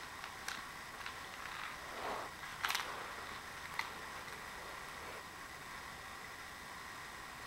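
A cat rustles and scratches against a carpet while wrestling a toy.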